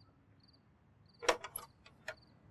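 A man knocks on a door.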